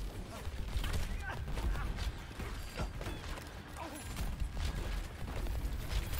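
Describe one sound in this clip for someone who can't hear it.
A gun fires rapid energy shots with sharp zapping bursts.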